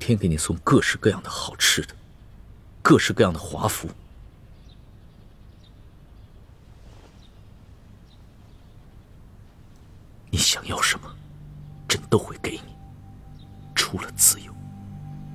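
A young man speaks quietly and firmly, close by.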